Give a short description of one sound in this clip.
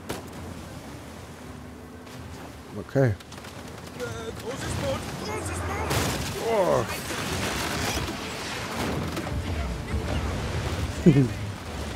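Heavy waves crash and splash against a boat.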